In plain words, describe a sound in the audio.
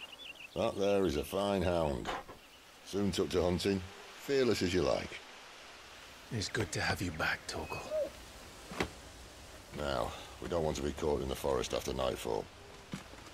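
A younger man answers calmly.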